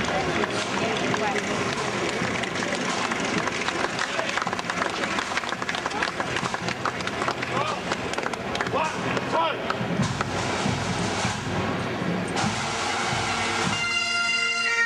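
A crowd chatters and cheers along a street outdoors.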